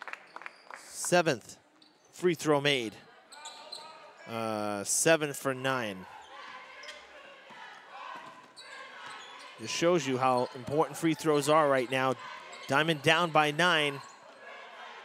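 A crowd of spectators shouts and cheers loudly in an echoing gym.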